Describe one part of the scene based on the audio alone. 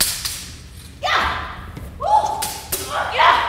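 A young woman shouts loudly in effort.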